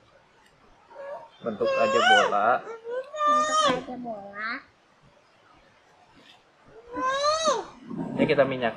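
A young child speaks excitedly in a high voice nearby.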